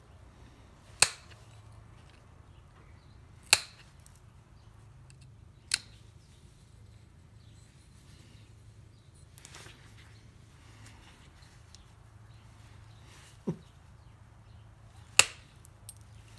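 A blade clicks sharply while cutting stiff material, now and then.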